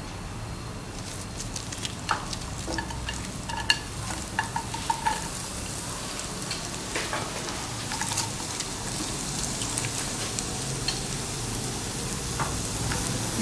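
Oil sizzles softly in a hot pan.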